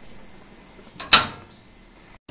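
A stove knob clicks as it turns.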